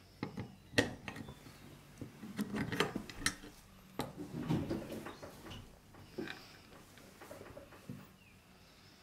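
Metal parts of an old lock clank and scrape as hands handle them.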